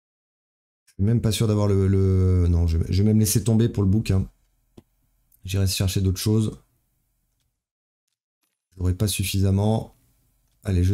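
A young man talks with animation close to a microphone, in short bursts.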